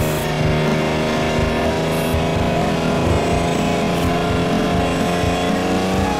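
A truck engine roars steadily, rising in pitch as it speeds up.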